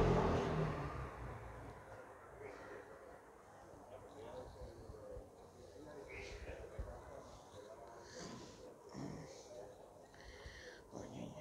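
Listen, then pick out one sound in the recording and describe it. A hand rubs through a cat's fur with a soft rustle.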